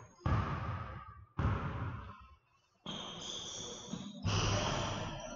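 A volleyball is smacked by hand in a large echoing gym.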